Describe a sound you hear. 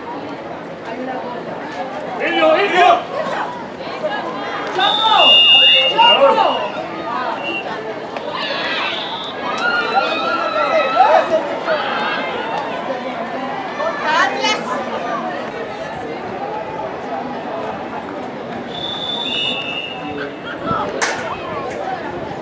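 Young women shout and call out to each other outdoors at a distance.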